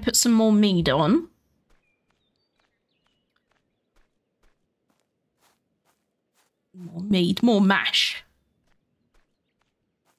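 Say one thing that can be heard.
Footsteps tread slowly along a dirt path.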